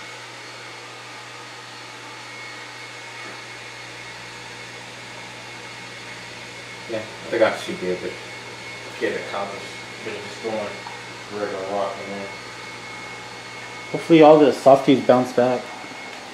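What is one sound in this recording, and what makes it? An aquarium pump hums steadily.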